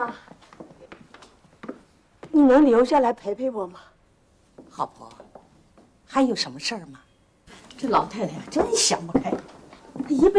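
An elderly woman speaks softly and pleadingly up close.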